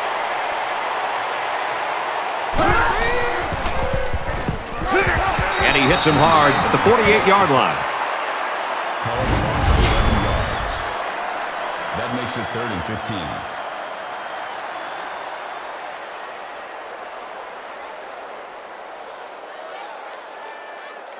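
A large stadium crowd roars steadily, slowly fading.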